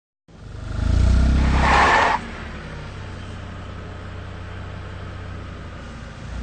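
A car engine roars loudly, then drops to a low steady hum.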